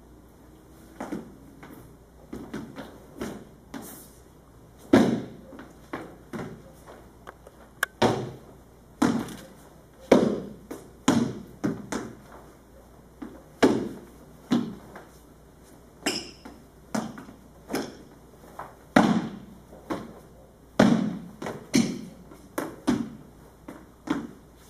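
Loose sleeves swish through the air with quick strikes.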